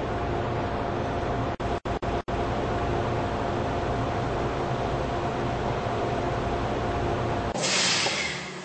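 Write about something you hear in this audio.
A train rumbles and hums steadily as it rolls along.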